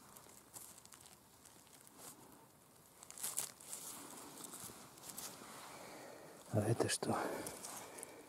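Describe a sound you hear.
A knife slices through a mushroom stem.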